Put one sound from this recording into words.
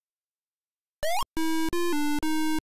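A rapid run of electronic bleeps comes from an 8-bit home computer game.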